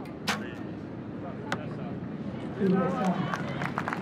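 An arrow thuds into a target.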